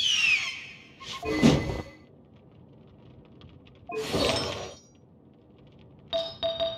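Short game sound effects whoosh and chime.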